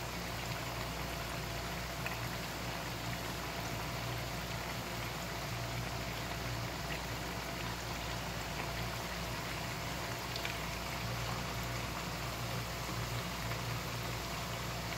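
Oil sizzles and crackles steadily in a pan.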